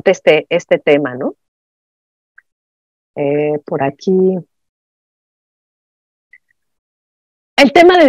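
A woman speaks calmly through an online call, pausing between phrases.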